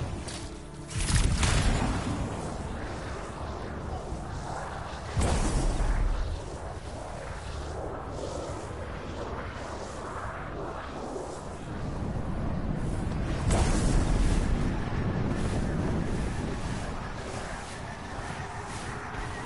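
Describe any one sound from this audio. A jet thruster roars in bursts.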